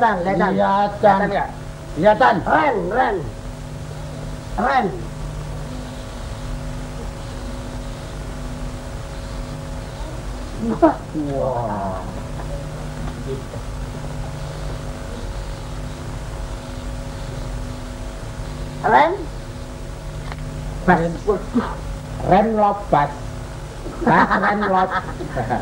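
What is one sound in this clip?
Young men talk with animation, close by.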